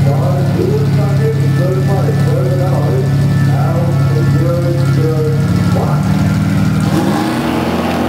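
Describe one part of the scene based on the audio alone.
A car engine idles loudly with a deep, lumpy rumble.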